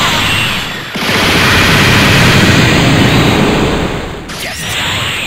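A loud explosion roars.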